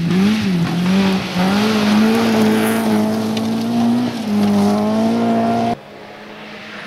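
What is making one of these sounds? Gravel sprays and crackles under spinning tyres.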